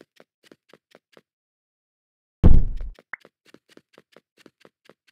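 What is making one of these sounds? Footsteps tap in a quick, steady rhythm.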